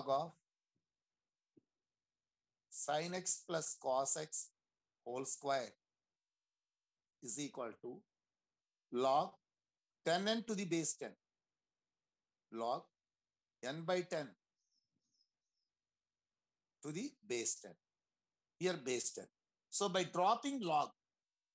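A man explains calmly through a microphone, pausing often.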